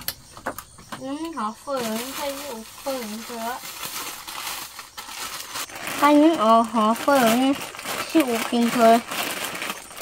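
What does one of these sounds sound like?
A young boy talks calmly and close by.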